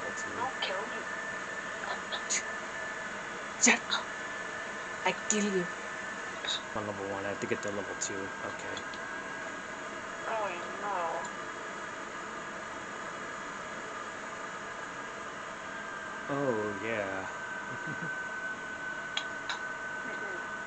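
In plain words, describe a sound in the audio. Video game shots and sound effects play through a television speaker in short bursts.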